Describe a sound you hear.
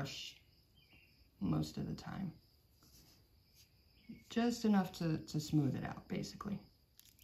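A brush strokes softly across a fingernail.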